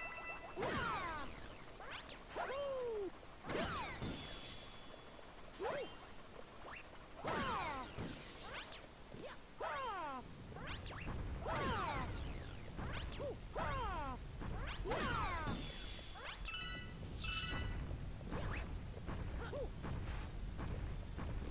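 Cartoonish jumping and spinning sound effects chirp and whoosh again and again.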